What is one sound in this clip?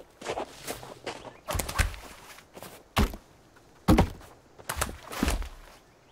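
Heavy wooden logs thud as they are dropped.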